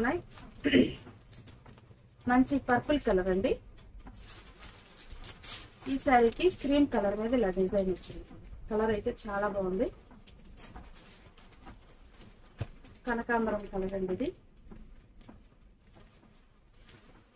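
Cloth rustles as fabric is handled.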